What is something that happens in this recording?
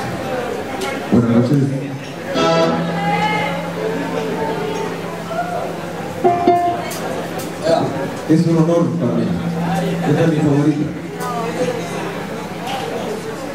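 A man sings loudly through loudspeakers.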